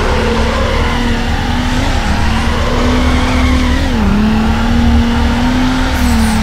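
Car tyres screech while drifting.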